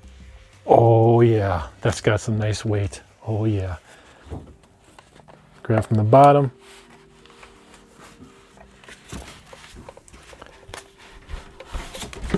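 Cardboard packaging scrapes and rustles as a box is handled.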